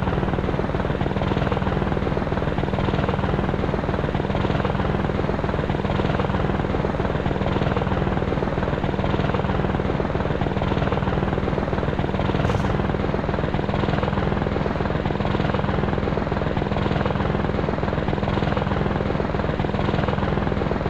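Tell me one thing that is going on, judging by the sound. A helicopter engine drones loudly.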